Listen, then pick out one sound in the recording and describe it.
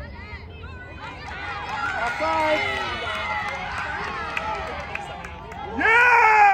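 A crowd of spectators cheers.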